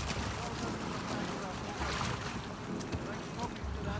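Water splashes as a man wades out of it.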